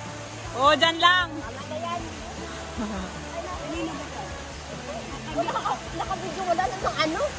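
A small waterfall splashes steadily.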